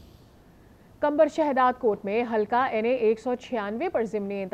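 A young woman speaks calmly and clearly into a microphone, reading out the news.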